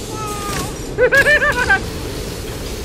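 A mechanical grabber line whirs as it shoots out and pulls taut.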